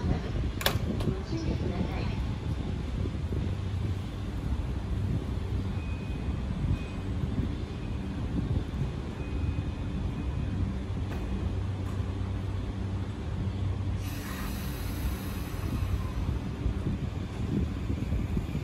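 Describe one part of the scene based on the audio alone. An electric commuter train hums while standing at a platform.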